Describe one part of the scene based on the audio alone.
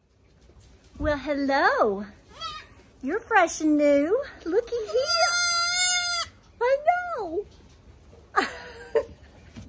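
A woman talks with animation close by, laughing.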